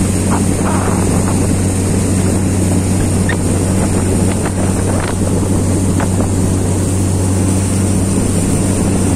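Water splashes against the hull of a moving boat.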